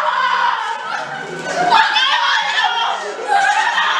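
A young woman laughs loudly nearby.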